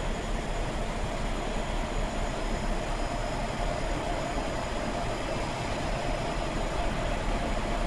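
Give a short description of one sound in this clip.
Industrial machinery hums and roars steadily in a large echoing hall.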